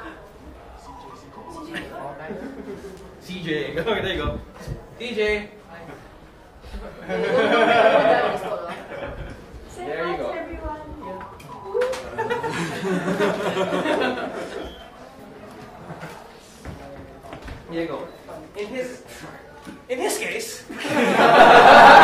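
Several young men and women talk and laugh nearby.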